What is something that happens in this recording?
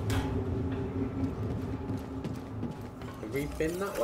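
Footsteps run across a metal floor.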